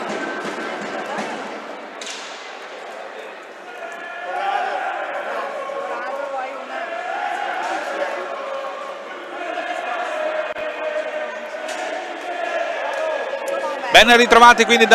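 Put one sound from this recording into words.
Young men talk to each other nearby in an echoing hall.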